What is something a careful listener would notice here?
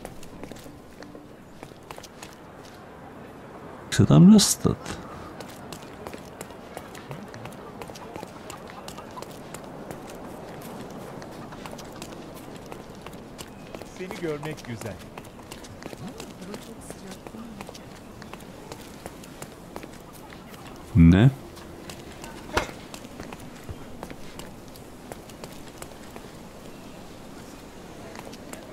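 Footsteps patter quickly on stone paving.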